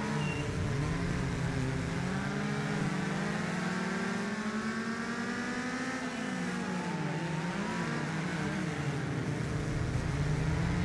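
A racing car engine roars, its pitch rising and falling as it accelerates and slows.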